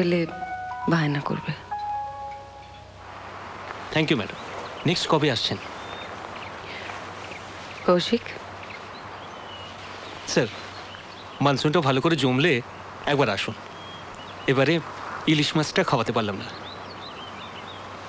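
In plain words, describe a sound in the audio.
A man speaks calmly at close range.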